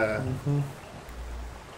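A man speaks briefly and calmly close to a microphone.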